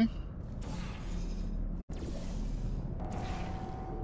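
A portal opens and closes with a soft whooshing hum.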